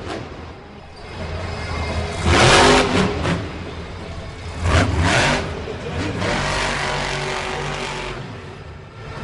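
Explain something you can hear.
A monster truck engine roars and revs loudly in a large arena.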